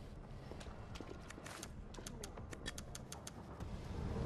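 Short menu clicks tick quickly.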